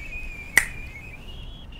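A woman snaps her fingers once.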